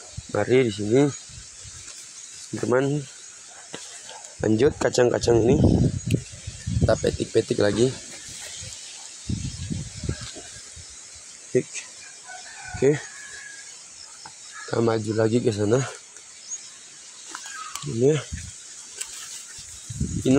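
Leaves and plants rustle as someone walks through undergrowth outdoors.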